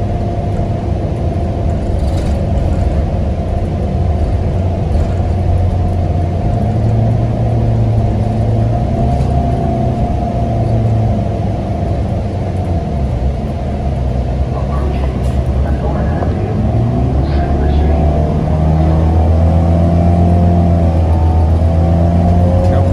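A bus engine hums and drones steadily as the bus drives along.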